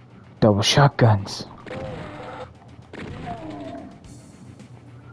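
A monster growls and snarls nearby.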